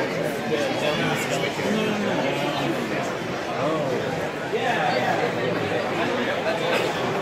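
A crowd of people chatters indoors, many voices overlapping.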